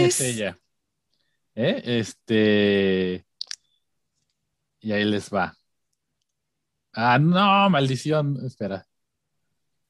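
A man talks cheerfully over an online call.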